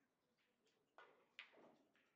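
A cue strikes a pool ball sharply.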